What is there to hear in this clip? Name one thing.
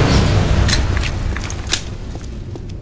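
A pistol magazine clicks into place.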